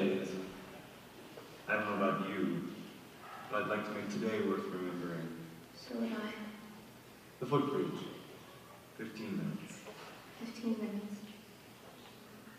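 A man speaks with feeling, heard from a distance in a large echoing hall.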